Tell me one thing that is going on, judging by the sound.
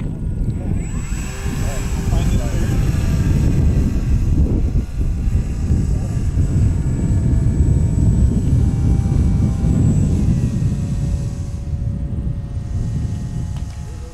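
An electric motor whines steadily as a model glider climbs.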